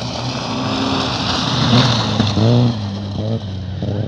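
Tyres crunch and spray loose gravel.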